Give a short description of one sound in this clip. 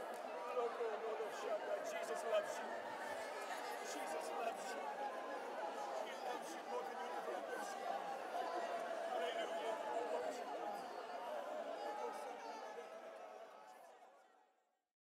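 A large crowd cheers and shouts in a big echoing hall, fading away at the end.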